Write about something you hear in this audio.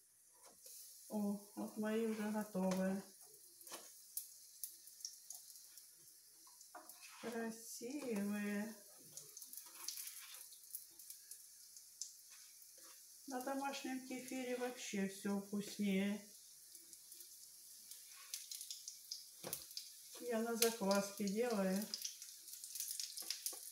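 A wooden spatula scrapes and taps against a frying pan while flipping pancakes.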